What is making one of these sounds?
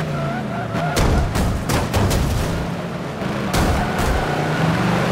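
Tyres screech as a car slides through a corner.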